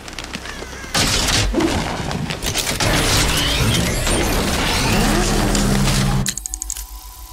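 A powerful car engine roars and revs.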